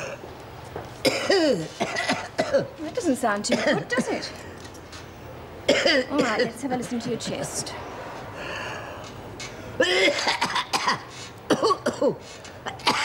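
A young woman speaks calmly and soothingly nearby.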